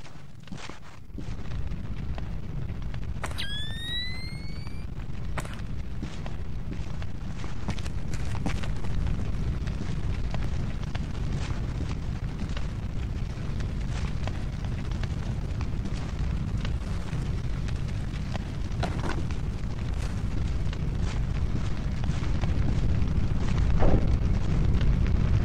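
Soft footsteps creep across the floor now and then.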